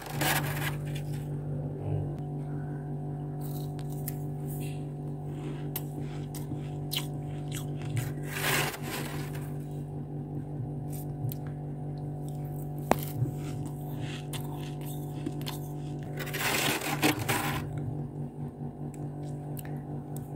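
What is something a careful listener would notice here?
A metal spoon scrapes and crunches into packed ice.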